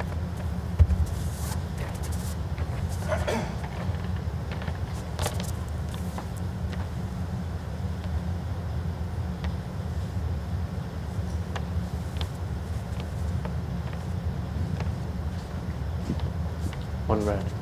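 A bowl rolls quietly across a carpet.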